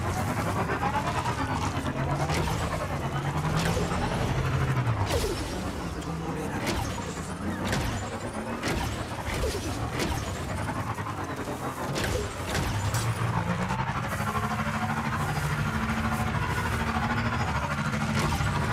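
A motorbike engine hums and revs steadily.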